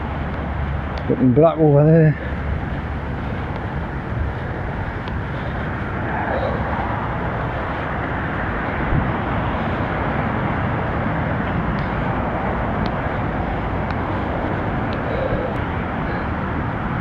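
Wind rushes steadily past.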